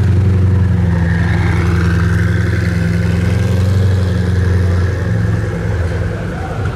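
A sports car engine revs and roars as it pulls away.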